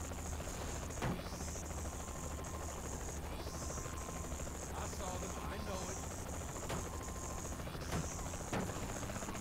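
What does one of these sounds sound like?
A helicopter's rotor thumps and whirs steadily.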